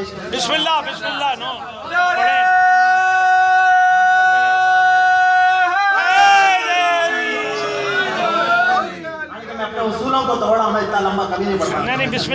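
A man recites melodically into a microphone, heard through loudspeakers in an echoing hall, holding long sung notes.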